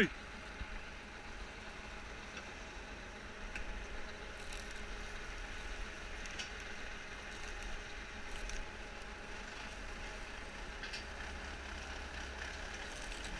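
A tractor engine rumbles low and steady close by.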